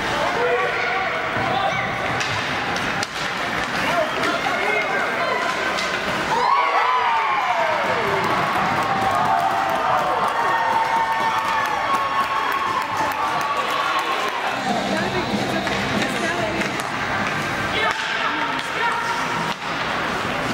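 Ice skates scrape and hiss across an ice rink.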